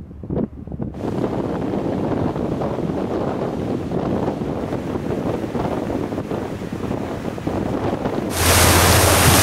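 Water rushes and churns along a ship's hull.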